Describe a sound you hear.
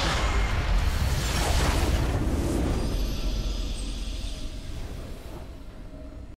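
A triumphant game fanfare swells and then slowly fades.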